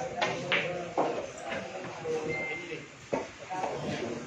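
Billiard balls click together.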